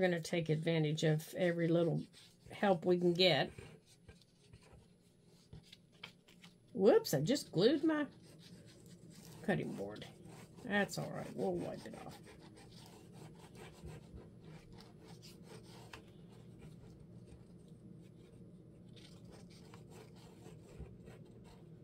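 A small roller presses and scrapes softly across paper.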